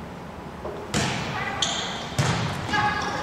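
A volleyball is struck with sharp slaps that echo through a large hall.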